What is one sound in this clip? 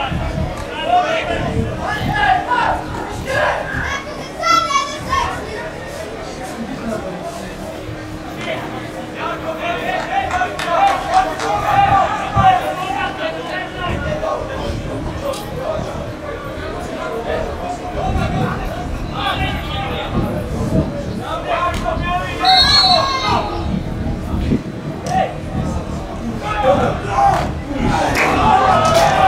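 Footballers shout to each other across an open field outdoors.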